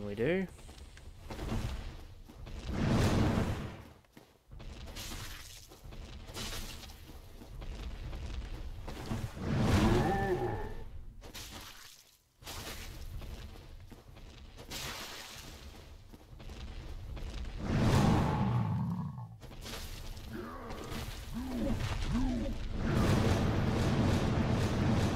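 Heavy footsteps thud loudly on stone.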